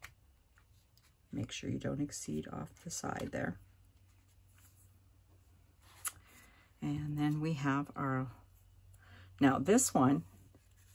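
Paper rustles softly as small cut pieces are handled and pressed down.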